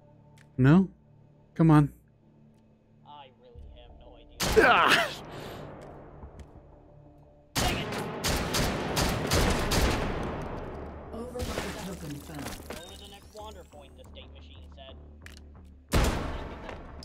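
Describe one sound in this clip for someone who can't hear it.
A rifle fires several loud shots.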